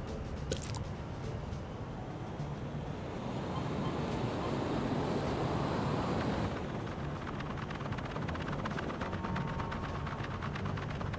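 Jet thrusters roar steadily, swelling louder for a while and then easing.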